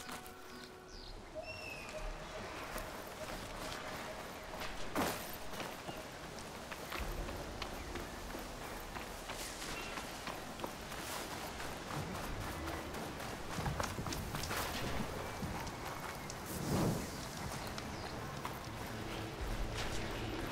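Footsteps run quickly over grass, dirt and sand.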